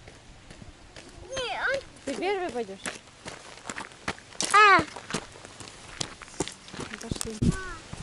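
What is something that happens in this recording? Small footsteps crunch on gravel.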